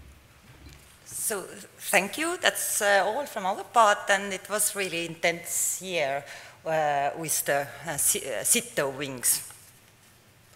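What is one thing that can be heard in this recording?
A woman speaks calmly through a microphone in a large room.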